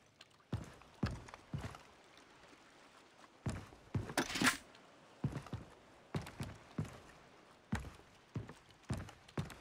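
Footsteps thud on wooden planks at a steady walking pace.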